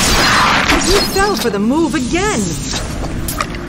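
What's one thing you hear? A giant scorpion hisses and screeches as it is struck.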